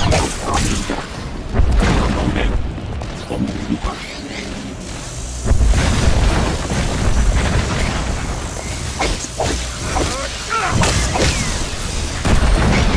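Blasters fire and zap in quick bursts.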